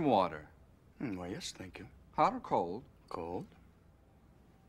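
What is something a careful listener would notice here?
A young man answers briefly in a calm voice.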